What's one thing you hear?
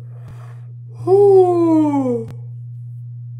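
A young woman lets out a long, falling exclamation.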